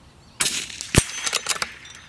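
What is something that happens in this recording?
A bullet strikes a hanging steel plate with a distant clang.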